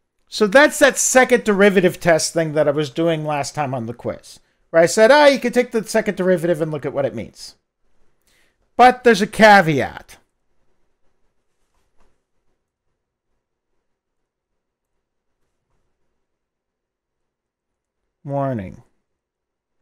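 A middle-aged man lectures calmly through a headset microphone.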